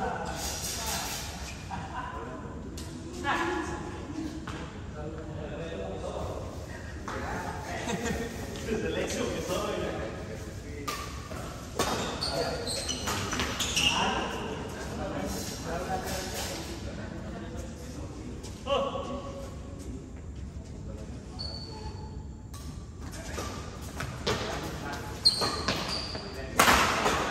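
Badminton rackets strike a shuttlecock back and forth in a large echoing hall.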